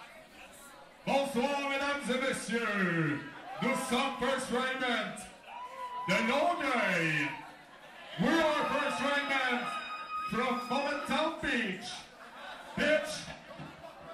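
A man sings loudly into a microphone through loudspeakers.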